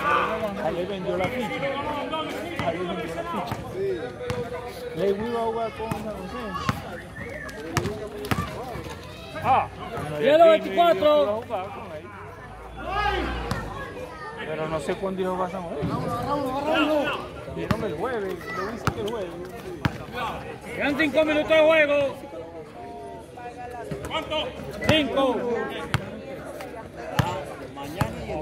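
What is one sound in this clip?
Young men shout and talk with animation nearby.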